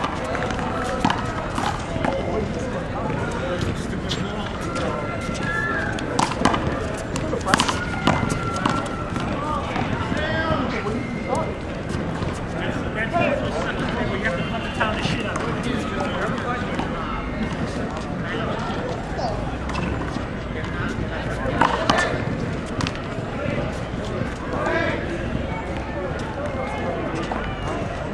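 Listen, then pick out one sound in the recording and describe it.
Young men call out and talk to each other outdoors.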